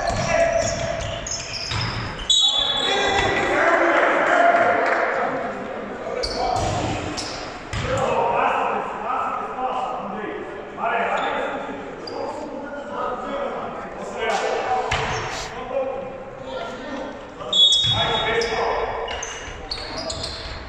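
Players shout and call to each other across the hall.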